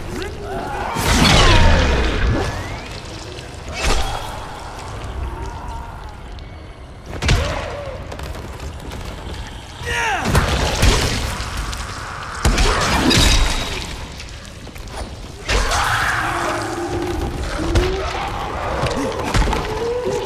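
Heavy blows land with wet splattering thuds.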